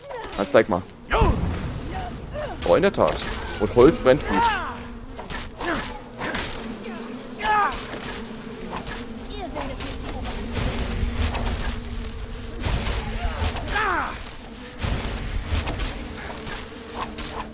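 Blades clang and ring in a fast fight.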